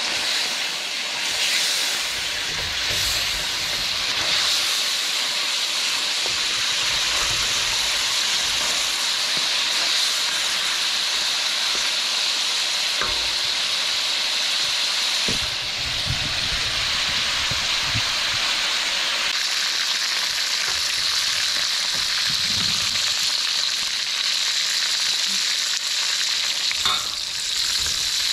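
A wooden spatula scrapes and taps against a metal wok.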